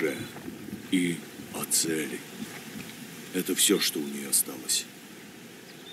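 A man speaks calmly in a low, deep voice.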